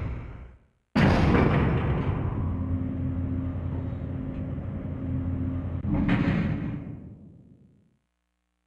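A lift hums and rumbles as it moves.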